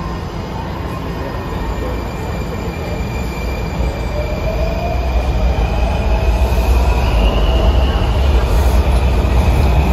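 The wheels of a subway train whine and squeal on the rails, rising in pitch.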